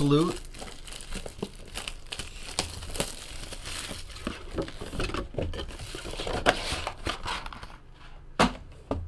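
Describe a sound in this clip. Plastic wrap crinkles as boxes of cards are handled.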